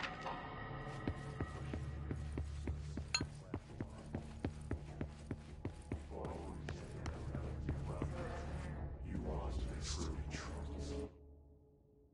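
Footsteps run quickly across a floor.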